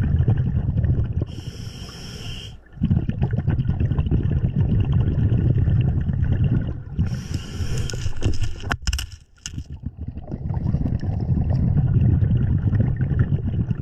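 Air bubbles rumble and gurgle loudly underwater.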